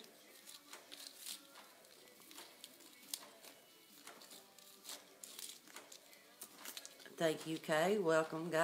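Small objects click and tap in a woman's hands.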